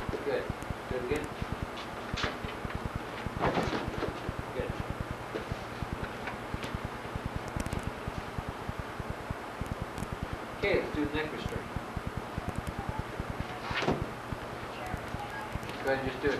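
Footsteps thud and shuffle on a padded mat.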